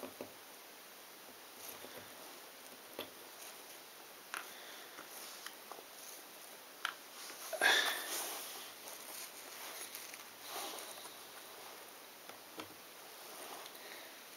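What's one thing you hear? Cardboard puzzle pieces rustle and slide under a hand.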